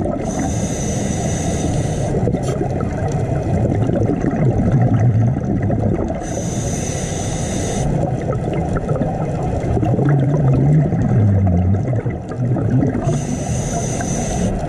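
Water rumbles low and steadily all around.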